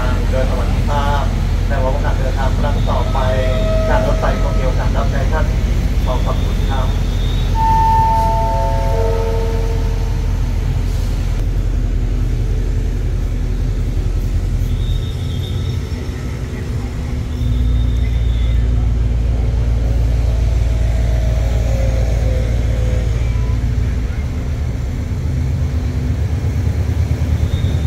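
A train's engine idles with a steady low rumble nearby.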